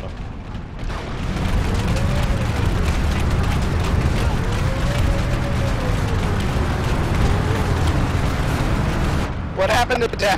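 Heavy vehicle engines rumble and roar nearby.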